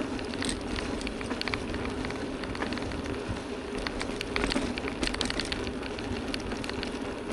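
Wind buffets the microphone with a low rumble.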